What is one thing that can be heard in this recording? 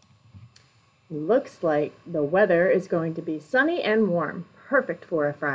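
A woman speaks calmly into a microphone, close by.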